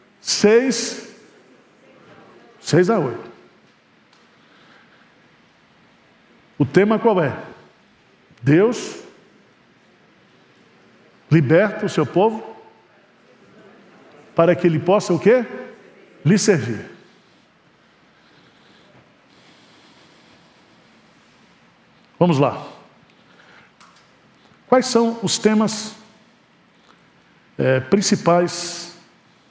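A middle-aged man speaks with animation through a microphone, in short bursts with pauses, in a slightly echoing hall.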